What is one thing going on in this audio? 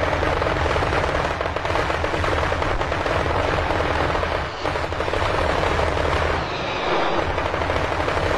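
Jet planes roar overhead.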